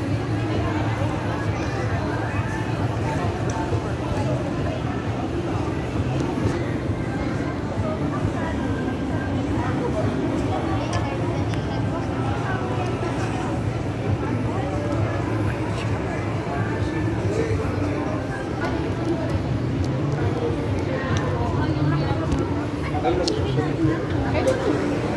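A crowd of people chatters in a busy, echoing space.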